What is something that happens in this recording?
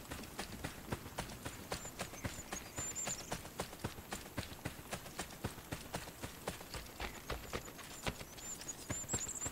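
Quick footsteps thud steadily on grass.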